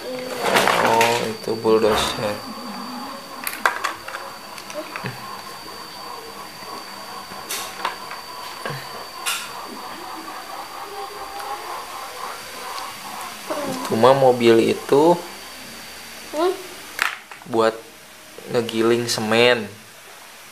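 A young boy talks softly nearby.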